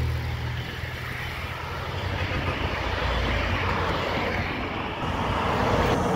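Cars drive past at moderate speed.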